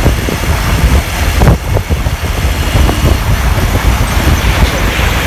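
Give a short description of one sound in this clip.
Wind rumbles and buffets loudly against a microphone on a moving motorbike.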